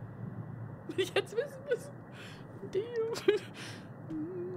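A young woman laughs nervously close to a microphone.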